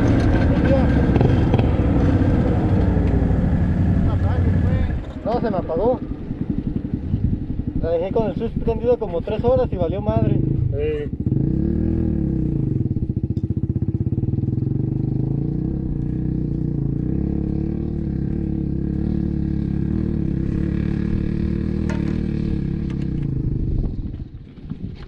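An off-road vehicle's engine idles nearby.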